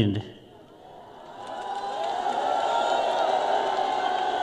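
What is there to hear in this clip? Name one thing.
A large crowd cheers in the distance.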